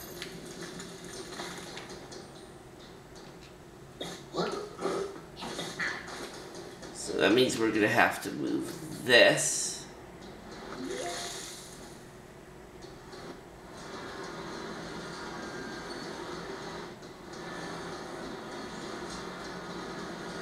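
Video game music and effects play quietly through a television speaker.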